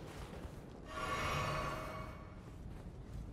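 A magic spell hums and shimmers.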